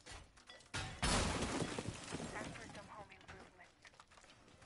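Wooden debris clatters and rattles down.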